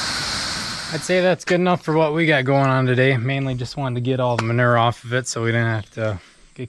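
A young man talks calmly close to the microphone.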